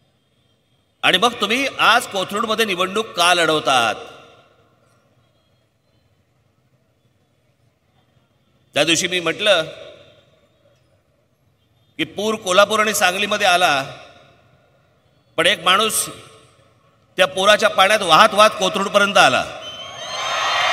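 A man speaks forcefully into a microphone over loudspeakers, echoing outdoors.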